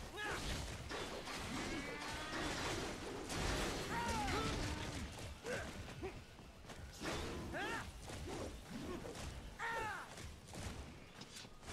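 Heavy blows and crashes thud loudly.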